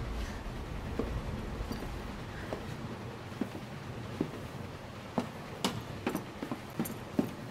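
Footsteps ring on a metal floor.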